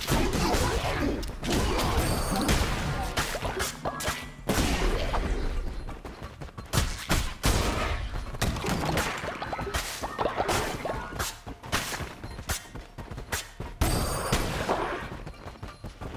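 Game enemies burst with sharp impact sounds.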